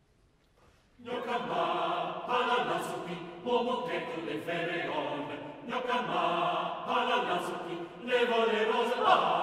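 A mixed choir of men and women sings together in a large, echoing hall.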